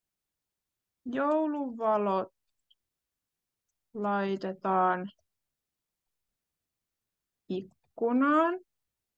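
A young woman speaks slowly and clearly over an online call, pausing between words.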